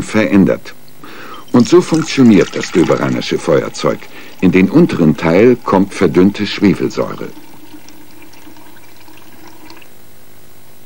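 Liquid pours and splashes into a glass jar.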